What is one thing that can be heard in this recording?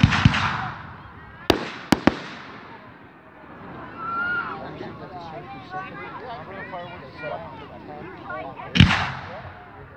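Fireworks explode with loud booming bangs.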